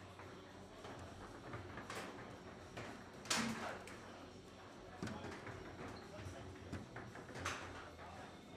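Foosball rods clatter and the ball cracks sharply against the table walls.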